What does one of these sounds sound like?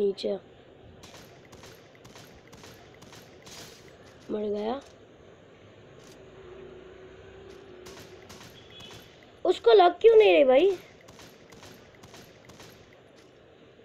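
Rifle shots crack out in quick bursts.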